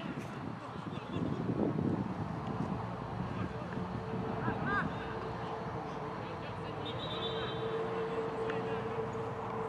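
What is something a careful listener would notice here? Footballers shout to each other far off across an open field.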